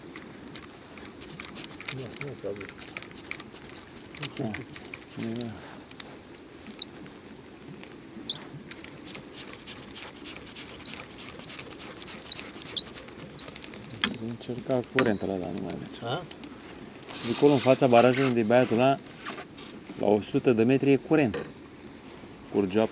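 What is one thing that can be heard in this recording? A fishing reel's handle turns with a fast, light clicking.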